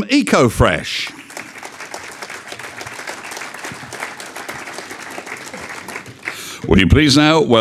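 A crowd applauds in a large room.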